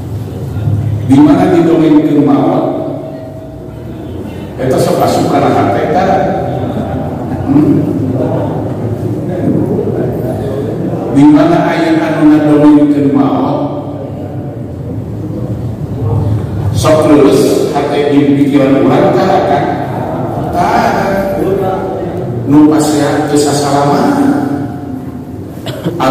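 An elderly man speaks slowly through a microphone, echoing in a large hall.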